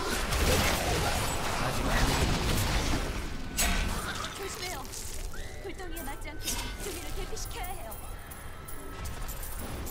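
Monsters grunt and screech as they are struck.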